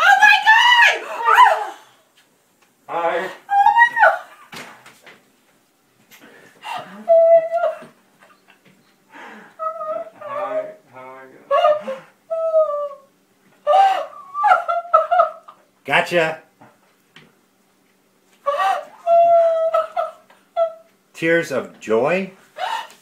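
An elderly woman cries and speaks emotionally up close.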